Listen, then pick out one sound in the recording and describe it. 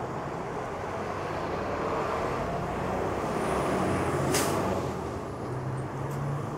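A car passes close by with a rising and fading whoosh.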